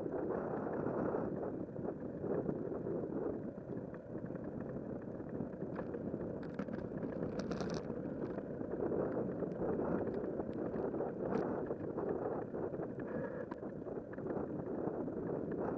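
Bicycle tyres hum on smooth pavement.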